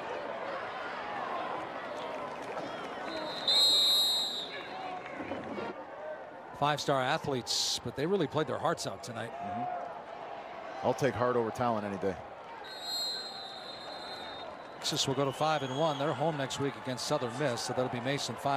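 A stadium crowd murmurs and cheers in the distance.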